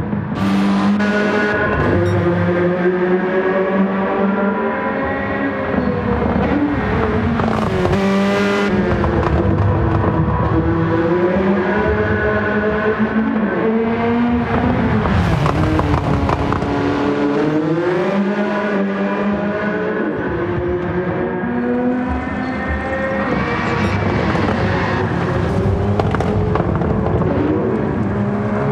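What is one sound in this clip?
A racing car engine roars, revving up and dropping with each gear change.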